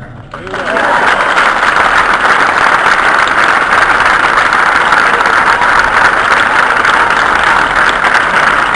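A crowd applauds loudly outdoors.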